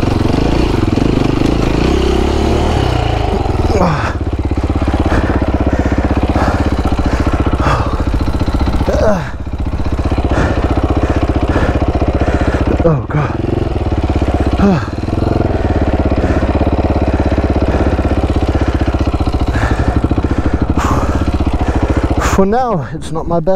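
A dirt bike engine revs loudly up and down close by.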